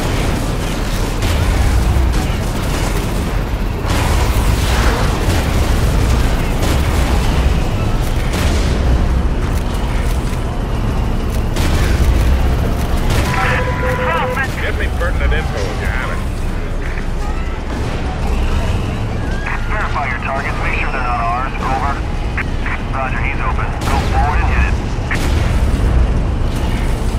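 Loud explosions boom again and again.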